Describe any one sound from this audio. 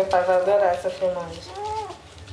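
A young girl speaks in a high, playful voice close by.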